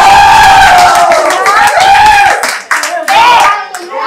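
A young woman claps her hands excitedly.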